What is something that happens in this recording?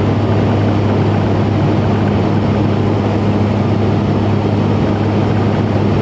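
A propeller engine drones loudly and steadily from close by.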